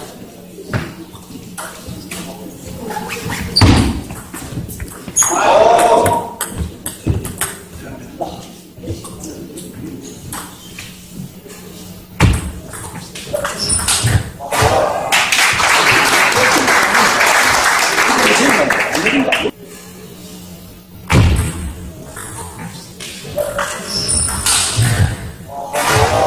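A table tennis ball clicks sharply against paddles and the table in quick rallies.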